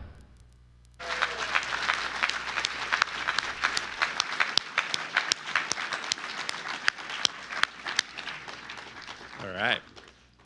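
An audience claps and cheers in a large hall.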